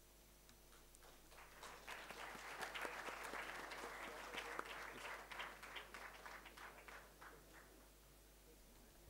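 An audience murmurs and chatters in a large hall.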